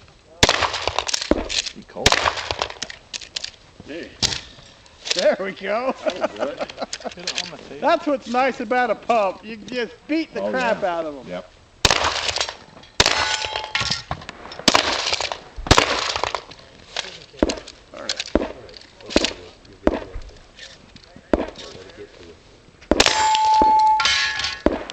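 Gunshots crack repeatedly outdoors and echo off the hills.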